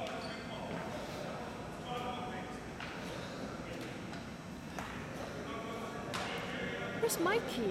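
Hockey sticks clack against the floor and ball.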